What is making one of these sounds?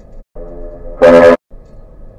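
A ship's horn blasts loudly nearby.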